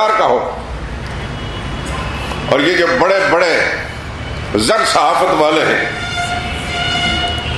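A middle-aged man speaks with emphasis through a microphone in an echoing hall.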